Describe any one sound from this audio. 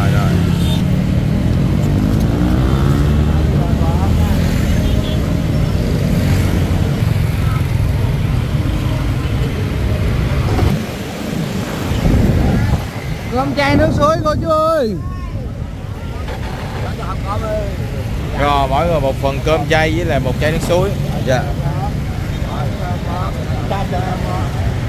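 Motorbike engines rumble steadily nearby in street traffic.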